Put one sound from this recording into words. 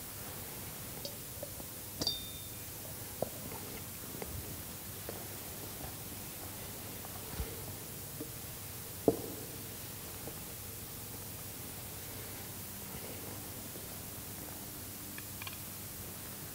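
Small objects knock and clink now and then in an echoing hall.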